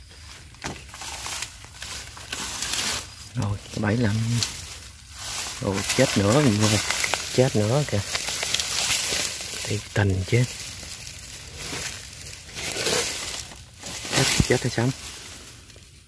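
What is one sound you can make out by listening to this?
Leaves and twigs rustle close by as someone pushes through undergrowth.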